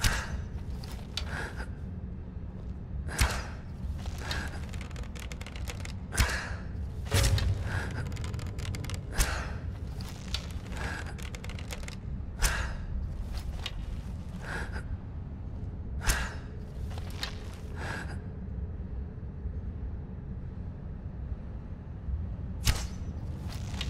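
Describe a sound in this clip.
A bowstring twangs sharply as arrows are loosed, again and again.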